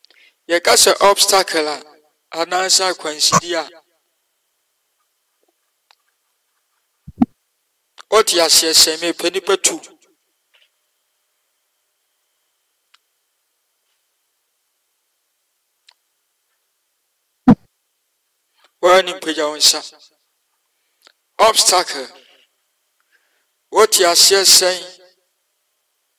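A man speaks in short bursts over an online call, with pauses between them.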